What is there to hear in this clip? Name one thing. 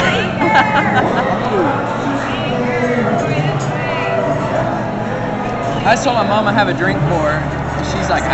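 A crowd chatters all around indoors.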